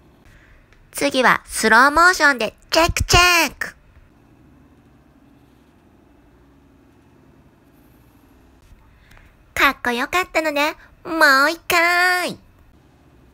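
A young girl's voice calls out nearby.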